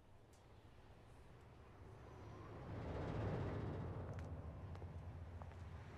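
A heavy truck rumbles past on a highway.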